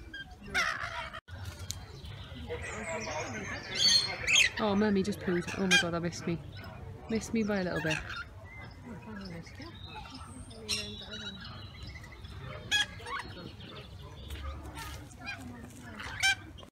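Parrots screech and chatter close by.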